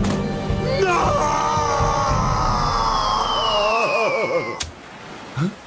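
A man screams loudly and long.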